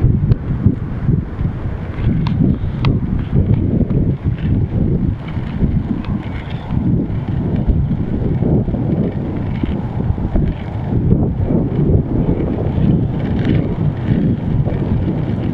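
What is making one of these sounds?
Bicycle tyres crunch over a gravel path.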